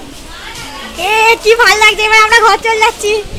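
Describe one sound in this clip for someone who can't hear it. A young woman speaks loudly nearby.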